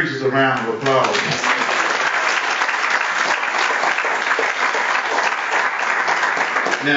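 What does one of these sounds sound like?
A small group of people applaud.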